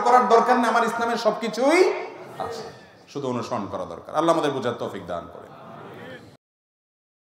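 A man preaches with animation into a microphone.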